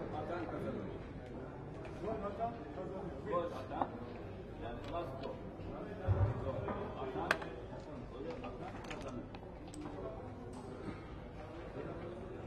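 Dice rattle in a cup and tumble onto a board.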